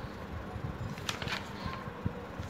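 A paper page rustles as it is turned.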